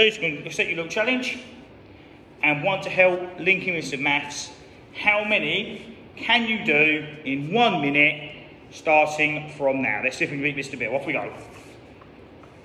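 A young man speaks with animation, close by, in a slightly echoing hall.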